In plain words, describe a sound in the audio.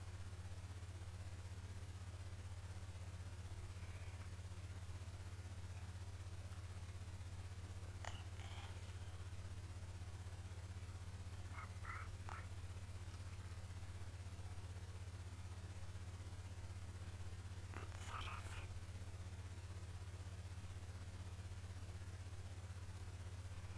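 A young man speaks briefly and quietly into a close microphone.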